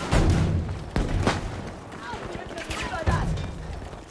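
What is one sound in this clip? Loud explosions boom and echo nearby.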